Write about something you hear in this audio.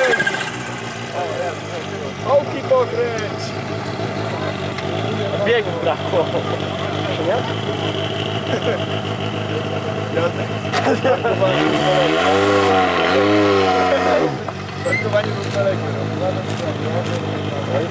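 A rally car engine idles with a rough, uneven rumble.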